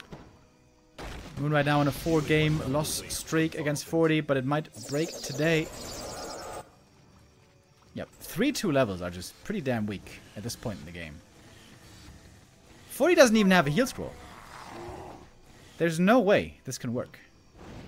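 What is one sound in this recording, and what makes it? A young man commentates with animation through a microphone.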